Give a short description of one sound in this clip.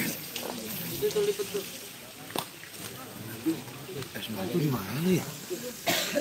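Several men talk at once nearby.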